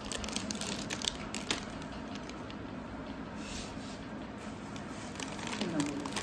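A plastic snack bag crinkles in a toddler's hands.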